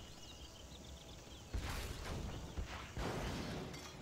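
A laser weapon fires with a buzzing zap.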